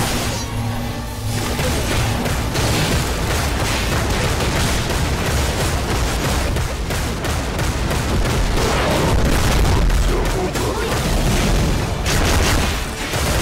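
Heavy booming impacts rumble.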